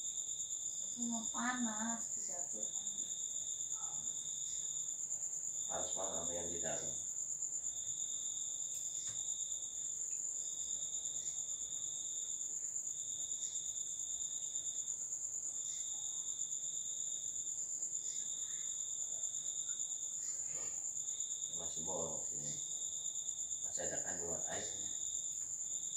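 A man speaks briefly and calmly nearby.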